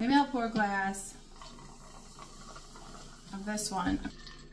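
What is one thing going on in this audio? Fizzy soda pours into a glass.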